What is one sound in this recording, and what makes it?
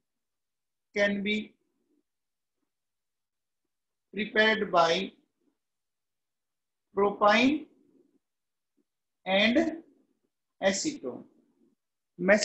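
A man speaks calmly and slowly into a close microphone, in short phrases with pauses.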